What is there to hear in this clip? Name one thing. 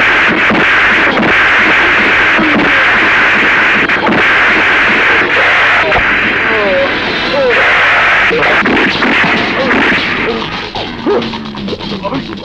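A man shouts in pain.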